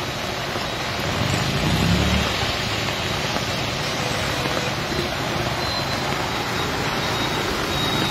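A car drives slowly through deep water with a splashing swash.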